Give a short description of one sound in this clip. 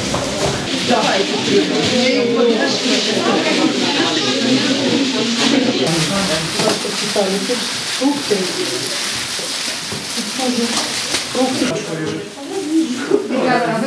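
Several adults talk over one another nearby.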